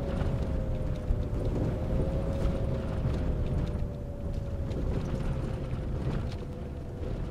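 A bus whines steadily as it drives along.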